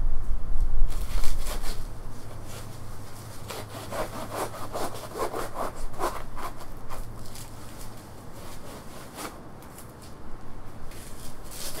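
Dry branches snap and clatter as a man handles them.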